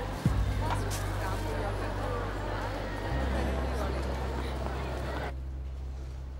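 A murmur of people and footsteps echoes in a large hall.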